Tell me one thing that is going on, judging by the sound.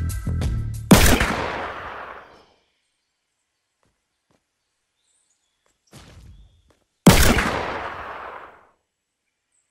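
A gun fires loud shots that ring out and fade.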